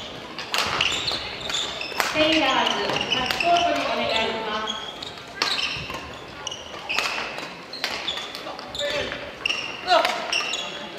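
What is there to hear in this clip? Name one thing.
Shuttlecocks are struck with rackets in quick sharp smacks, echoing in a large hall.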